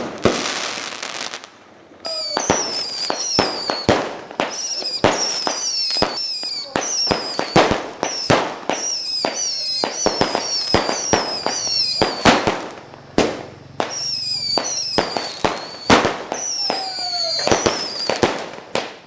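Fireworks burst with loud, rapid bangs and crackles.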